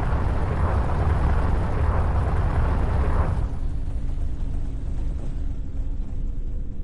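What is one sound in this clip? A spaceship's engines roar with a deep rumble, loud at first and then softer.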